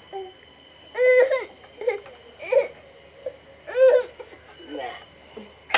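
A small child cries loudly close by.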